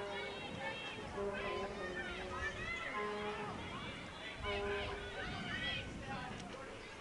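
Young women shout to each other across an open field, distant.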